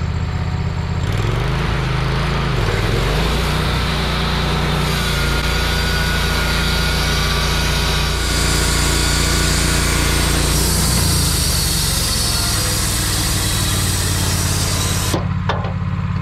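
A band saw blade cuts through a log with a rough whir.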